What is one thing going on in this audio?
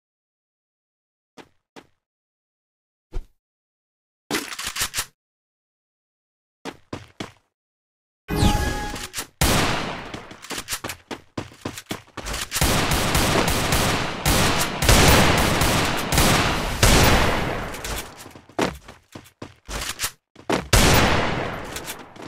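Footsteps patter quickly as a character runs.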